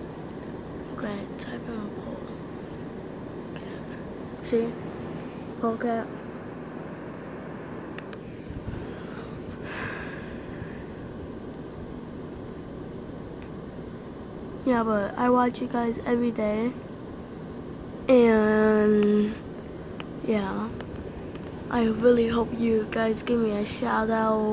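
A boy talks close to a phone microphone, in short bursts with pauses.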